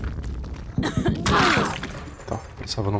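A heavy blow lands with a wet thud.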